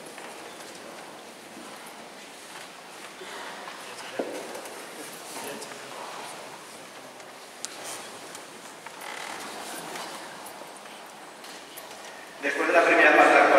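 Men and women chat quietly in a large echoing hall.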